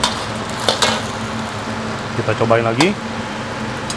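A gas burner roars steadily under a wok.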